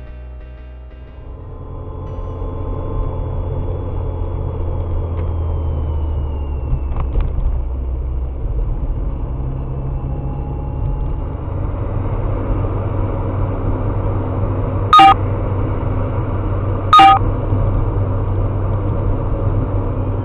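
A car engine hums steadily with road noise while driving.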